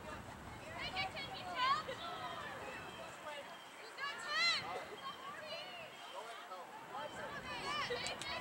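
Young women call out to each other in the distance outdoors.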